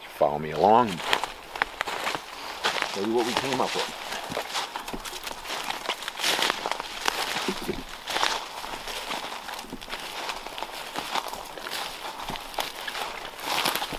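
Footsteps crunch and rustle through dry leaves.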